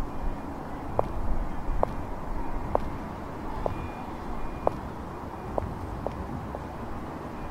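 High heels click on pavement.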